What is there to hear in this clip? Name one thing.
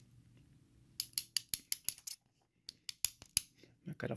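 Small metal pins click and tap against a tool.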